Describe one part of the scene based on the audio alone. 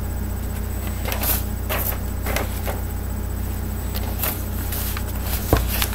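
Paper rustles and crackles.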